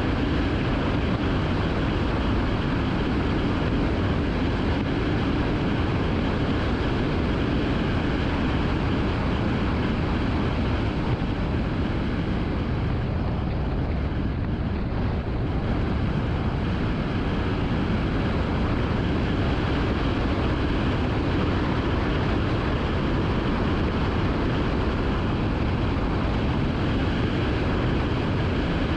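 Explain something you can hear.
A car's engine and tyres hum steadily on the road as it drives.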